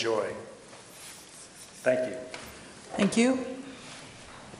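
An older man speaks briefly through a microphone.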